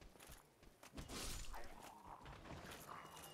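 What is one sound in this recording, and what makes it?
A sword swings through the air with a whoosh.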